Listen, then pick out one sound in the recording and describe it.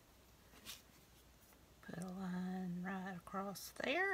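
A glue pen taps and rubs on paper.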